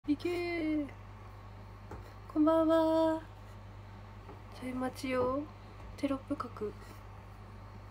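A young woman speaks softly and close to the microphone.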